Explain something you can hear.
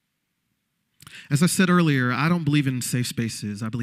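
A man speaks with animation through a microphone, heard over loudspeakers in a large hall.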